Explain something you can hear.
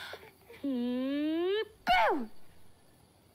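A young woman wails loudly.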